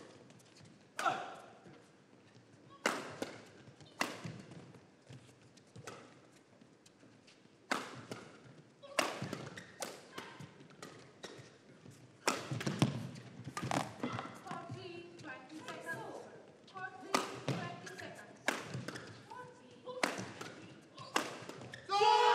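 Rackets smack a shuttlecock back and forth in sharp hits.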